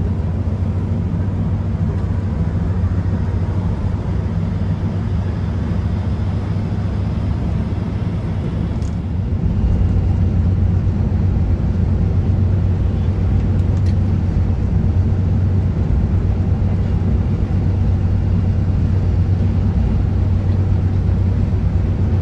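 A bus engine hums low and steady while driving.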